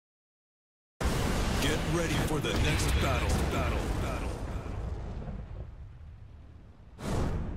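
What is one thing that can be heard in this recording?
Flames roar with a deep rumbling boom.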